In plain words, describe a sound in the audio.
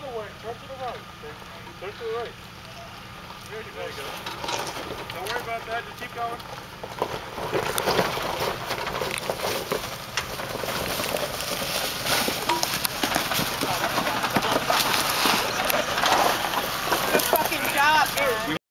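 An engine growls as an off-road vehicle crawls over rocks.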